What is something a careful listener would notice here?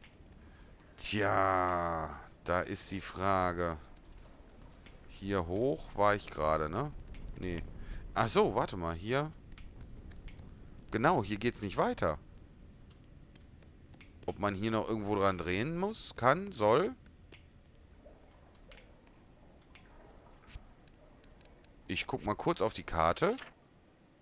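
A man talks into a close microphone, in short bursts with pauses.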